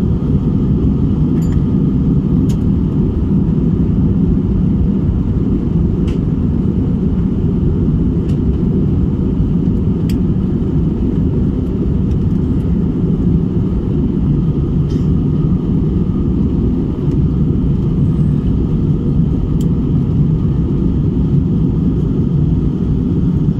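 Jet engines roar in a low, steady drone inside an airliner cabin in flight.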